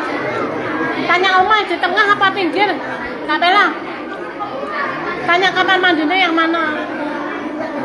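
A woman's high voice calls out loudly.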